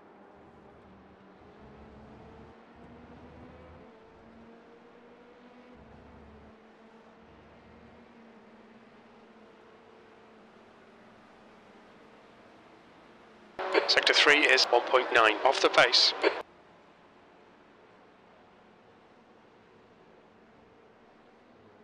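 Racing car engines drone steadily in the distance.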